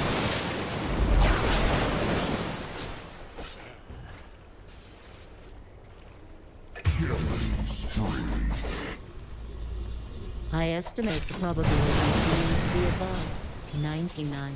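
Magic spell effects crackle and burst in quick bursts.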